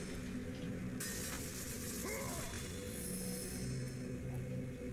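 Blades whoosh and slash through the air.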